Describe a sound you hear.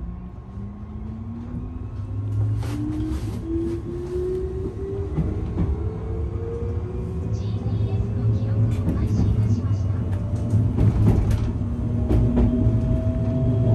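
Train wheels rumble and clack over the rail joints.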